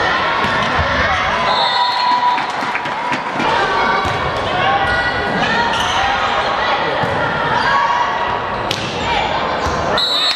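Spectators chatter and cheer in a large echoing hall.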